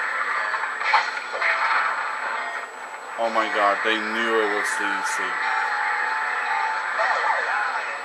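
Magic blasts crackle and whoosh in a video game.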